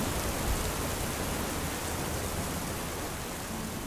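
Oil sizzles gently in a pan.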